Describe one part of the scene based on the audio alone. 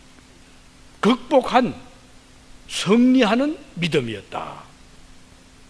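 An elderly man speaks with emphasis into a microphone.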